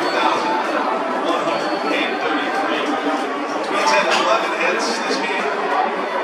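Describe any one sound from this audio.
Players slap hands in high fives.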